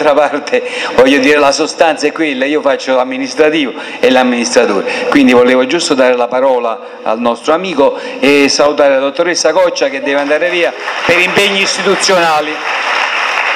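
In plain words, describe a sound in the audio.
A woman speaks with animation through a microphone in a room with echo.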